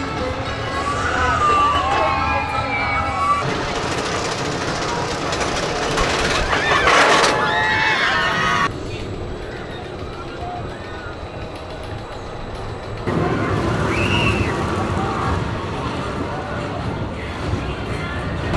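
Riders on a roller coaster scream.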